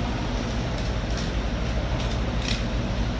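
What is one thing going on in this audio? A knife scrapes and cuts through fish flesh.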